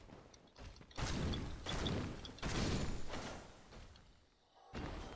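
Heavy blows clash and thud in a fight.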